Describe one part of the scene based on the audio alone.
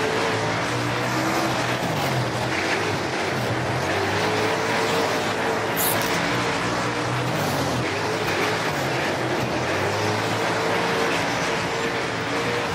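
Tyres spray and crunch over loose dirt.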